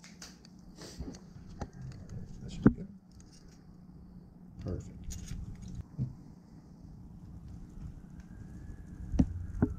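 Metal parts click and clink together in a person's hands.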